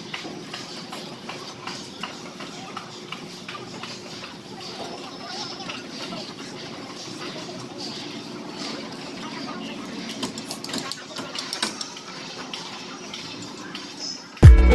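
A cloth rubs and wipes against a plastic bumper.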